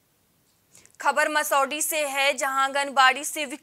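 A young woman reads out the news calmly into a microphone.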